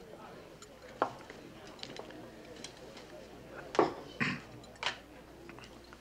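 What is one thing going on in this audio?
Glass clinks against glass.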